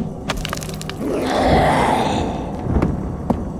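A creature lets out a sudden harsh, rushing screech.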